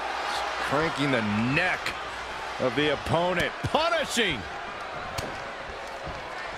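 Blows and bodies thud against a wrestling mat.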